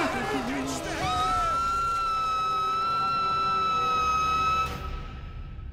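A middle-aged man screams long and loud.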